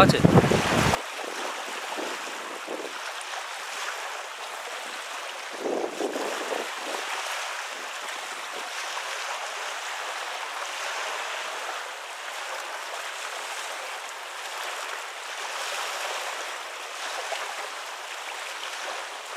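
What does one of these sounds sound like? Small waves lap gently at a pebbly shore.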